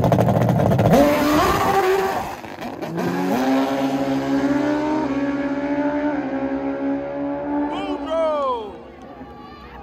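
A motorcycle engine races away, shifting up through the gears.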